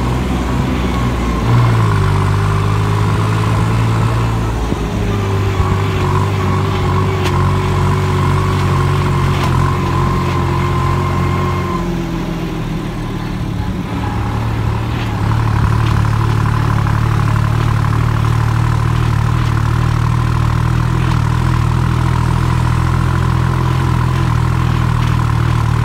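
A motorcycle engine drones steadily, dipping briefly and then picking up again.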